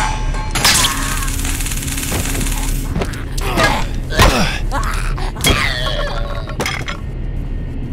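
A creature screeches and wails close by.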